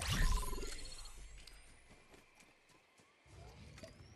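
Footsteps patter across grass.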